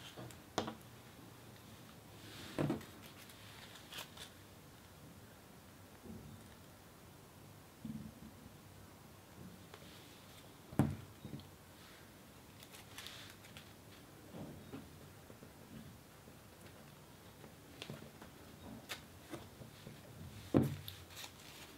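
Paper pieces tap softly onto a table.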